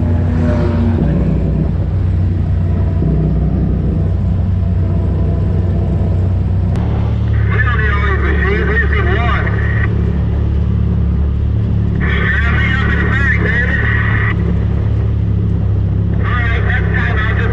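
Tyres crunch over a dirt and gravel track.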